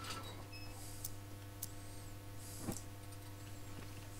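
An oil lantern is lit.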